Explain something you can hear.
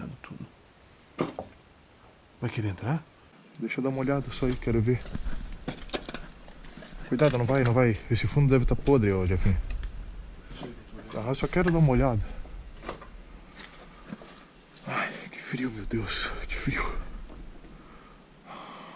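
Footsteps crunch on loose rubble and boards.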